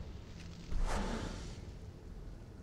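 A magical portal whooshes with a rushing roar.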